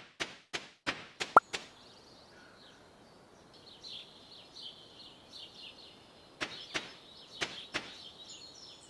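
Footsteps tap quickly on dry ground.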